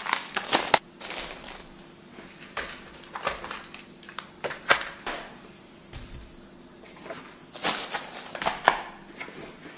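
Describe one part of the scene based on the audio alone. Packages are set down on a table with soft knocks.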